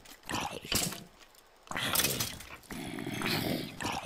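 A sword hits monsters with short thuds.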